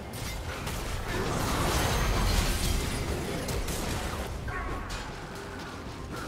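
Magic spells whoosh and crackle in a noisy battle.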